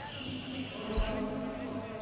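A ball thumps on the court.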